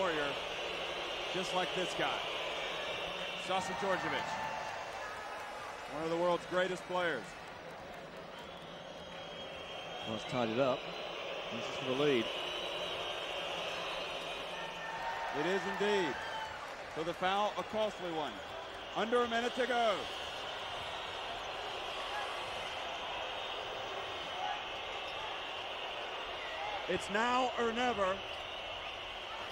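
A large crowd murmurs and cheers in an echoing arena.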